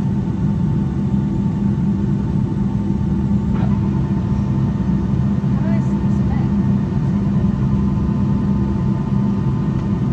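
Jet engines roar steadily from inside an airliner taxiing.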